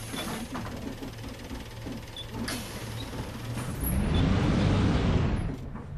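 Bus doors hiss and close.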